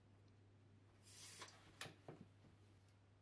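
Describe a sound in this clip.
A tape measure retracts and snaps shut.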